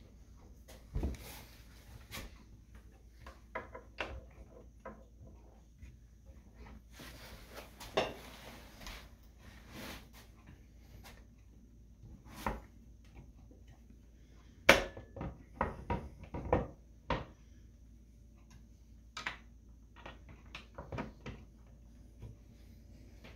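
Wooden cabinet doors knock and click.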